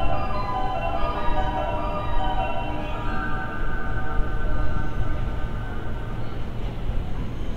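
An electric train's motor whines as it slows.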